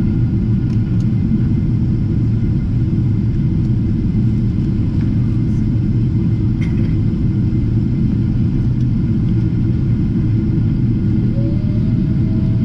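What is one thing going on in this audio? An airplane cabin hums steadily in flight.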